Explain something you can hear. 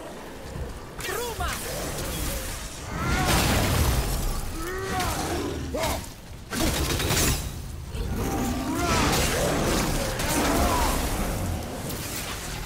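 Creatures shriek and growl.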